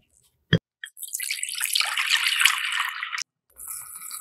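Milk pours and splashes into a glass bowl.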